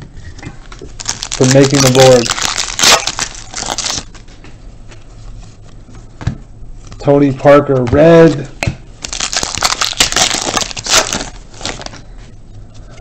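Foil card wrappers crinkle and rustle in hands.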